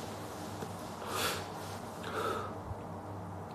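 A young man exhales smoke with a soft breath.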